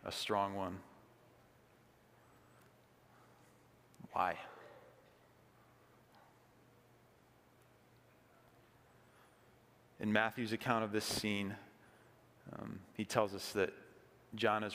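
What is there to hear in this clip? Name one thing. A man speaks calmly into a microphone in a large echoing hall.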